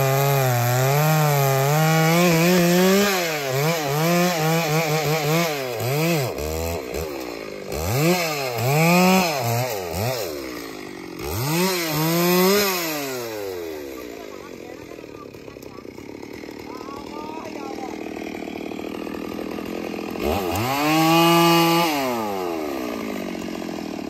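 A chainsaw engine revs up and down loudly while cutting wood.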